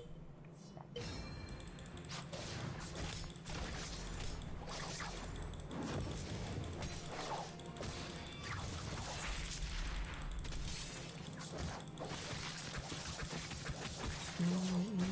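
Game swords clash and spell effects whoosh during a fight.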